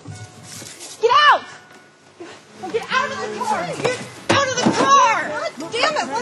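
A woman talks excitedly nearby.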